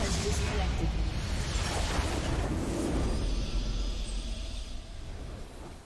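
A triumphant fanfare swells and fades.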